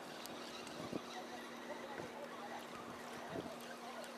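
A fishing reel clicks softly as its handle is wound.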